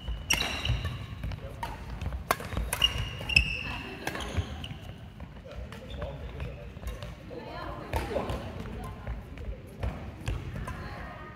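Badminton rackets hit a shuttlecock with sharp pings.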